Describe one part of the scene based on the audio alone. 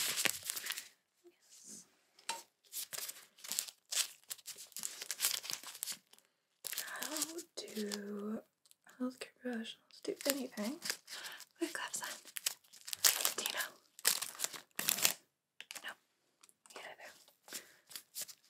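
A plastic wrapper crackles as gloved hands handle it.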